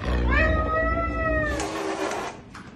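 A caracal meows with a rising and falling call.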